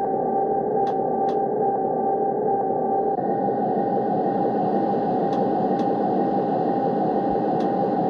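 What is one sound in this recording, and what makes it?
A train engine hums and rumbles steadily.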